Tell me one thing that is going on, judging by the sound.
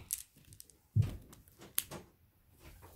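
Scissors snip through a mesh bag.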